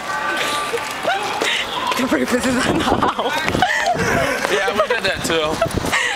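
Young men shout and laugh excitedly nearby, outdoors.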